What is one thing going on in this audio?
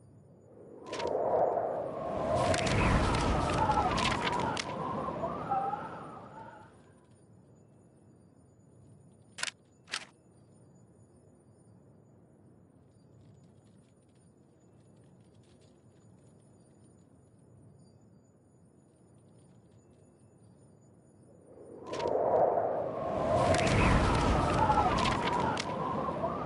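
A swirl of bright, chiming game effects plays in short bursts.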